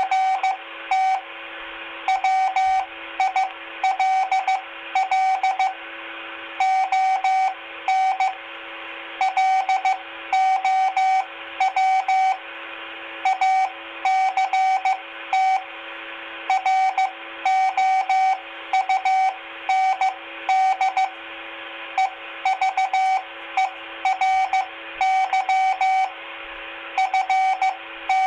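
A two-way radio sends out rapid, uneven bursts of beeping tones.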